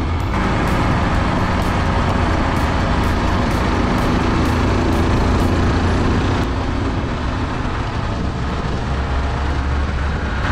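A motor scooter engine hums steadily.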